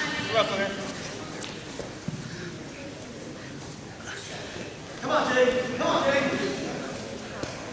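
Wrestlers thud and scuffle on a mat.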